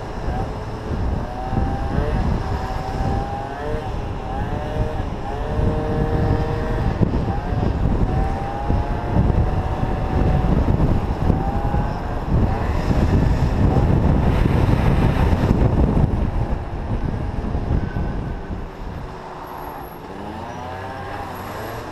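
Wind rushes and buffets loudly.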